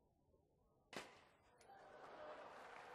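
Glass fragments tinkle and scatter.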